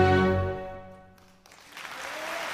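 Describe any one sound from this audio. An orchestra holds a final chord that fades away.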